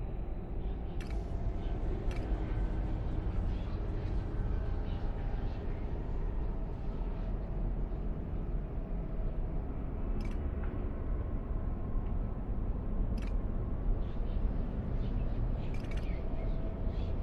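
Short soft clicks sound now and then as menu items are picked.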